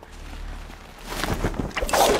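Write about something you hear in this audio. A rush of wind roars past during a fall.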